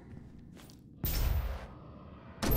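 A short electronic chime rings as an item is picked up.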